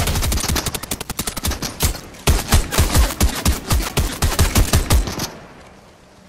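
A pickaxe strikes and smashes a wooden wall in rapid blows.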